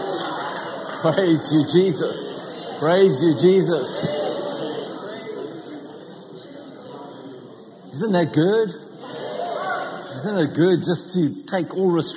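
A middle-aged man speaks with animation through a microphone in a reverberant hall.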